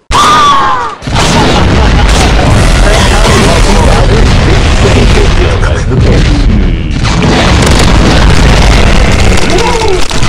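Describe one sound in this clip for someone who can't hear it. Explosions boom with a deep, steady rumble.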